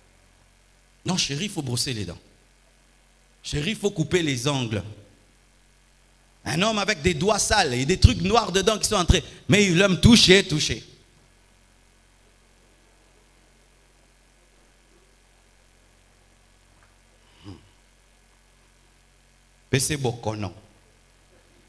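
A middle-aged man preaches with animation into a microphone, in bursts with long pauses.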